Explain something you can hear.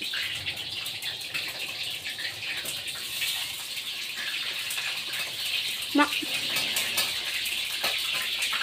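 A woman chews food noisily.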